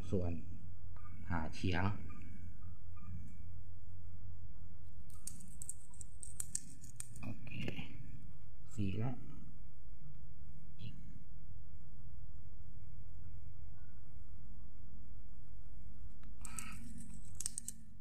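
A knife scrapes and slices through a fibrous plant stalk.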